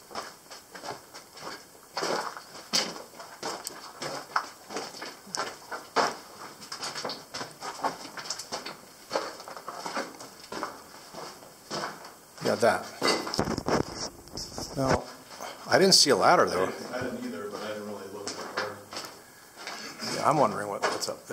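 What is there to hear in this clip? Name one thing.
Footsteps crunch on loose gravel and dirt, echoing slightly in a narrow tunnel.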